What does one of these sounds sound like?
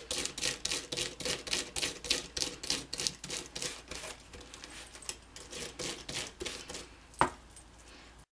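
A crank handle on a machine clicks in a quick, steady rhythm.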